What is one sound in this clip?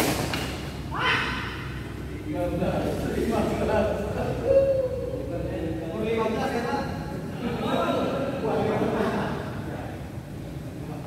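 Men talk and call out to each other in an echoing hall.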